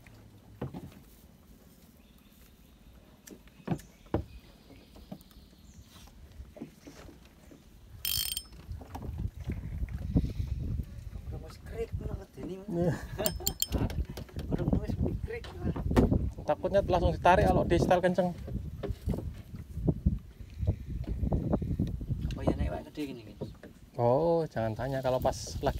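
Water laps gently against the side of a small boat.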